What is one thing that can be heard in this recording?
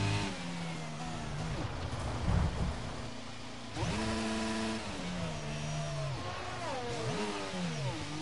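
A racing car engine whines and shifts pitch as it revs up and down.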